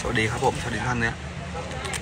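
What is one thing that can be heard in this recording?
A young man bites into a crunchy snack.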